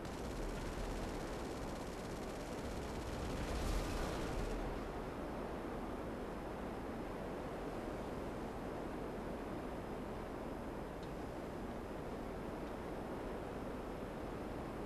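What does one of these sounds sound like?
A jet engine roars steadily with a rushing noise.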